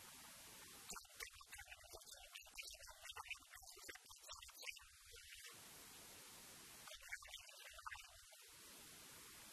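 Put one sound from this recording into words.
Footballers call out to each other across an open pitch, far off.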